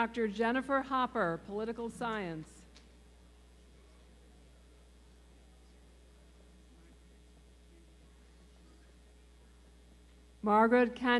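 A woman reads out through a microphone in a large hall.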